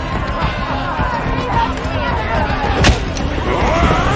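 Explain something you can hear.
Metal weapons clash against wooden shields.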